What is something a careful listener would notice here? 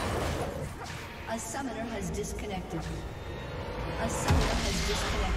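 Game characters clash in a fight with spell and hit effects.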